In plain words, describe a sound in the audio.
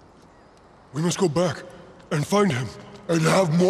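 A young man speaks tensely and close by.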